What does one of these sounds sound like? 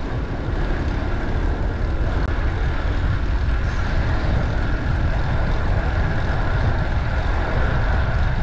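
Wind rushes loudly past a bicycle rider moving along a street.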